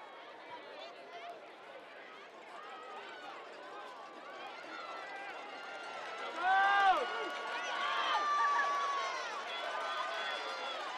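A crowd of spectators cheers and shouts outdoors, growing louder.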